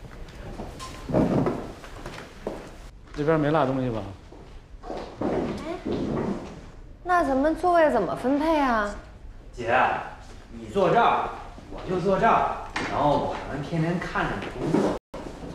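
A middle-aged man speaks calmly in a room.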